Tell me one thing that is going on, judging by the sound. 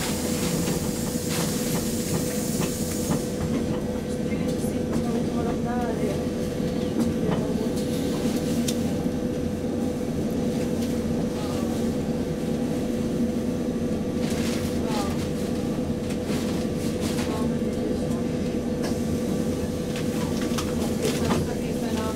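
A train idles with a steady low engine hum.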